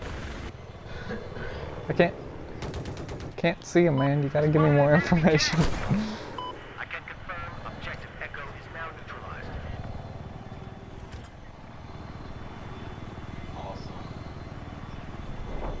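A helicopter's engine and rotor drone in flight.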